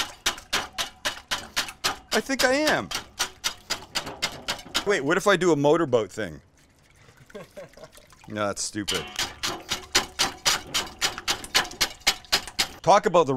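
A wire whisk clatters rapidly against a metal bowl.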